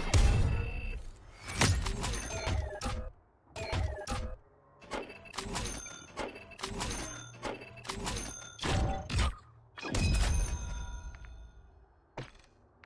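Game interface chimes and whooshes play as cash totals tally up.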